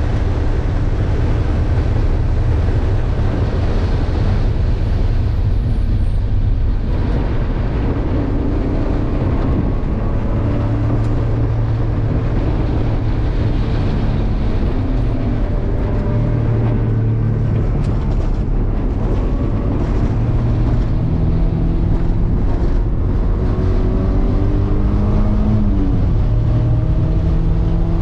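A car engine roars loudly from inside the cabin, revving up and down as the gears change.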